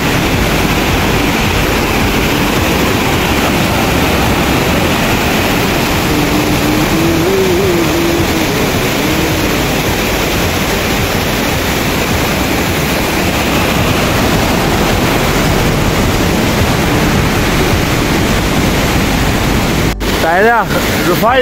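A fast mountain stream rushes and roars loudly close by.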